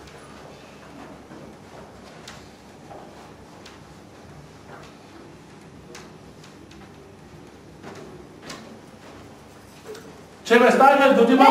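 Footsteps shuffle softly on a carpeted floor.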